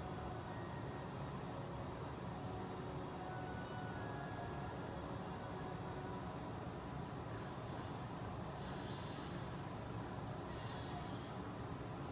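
Soft video game music plays through a television speaker.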